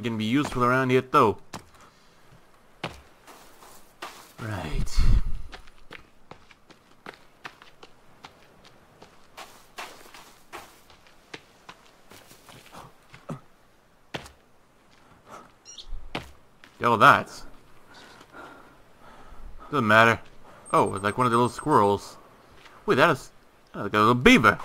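Footsteps crunch and rustle through grass.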